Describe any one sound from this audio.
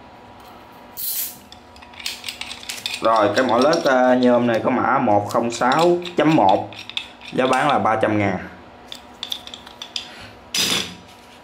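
Metal tools clink and rattle as they are handled.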